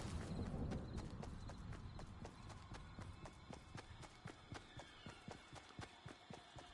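Quick footsteps thud across soft ground.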